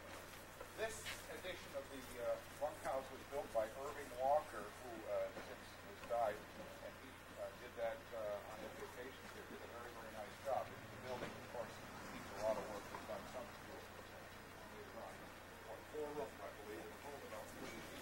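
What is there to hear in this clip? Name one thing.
A man talks calmly nearby, outdoors.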